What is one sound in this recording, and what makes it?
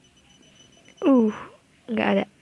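A cartoon cat meows questioningly.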